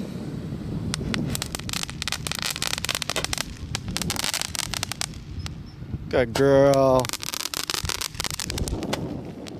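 Fireworks crackle and pop rapidly overhead.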